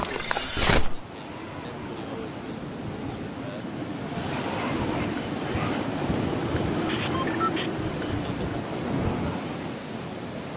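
A glider flaps in the wind as a skydiver drifts down.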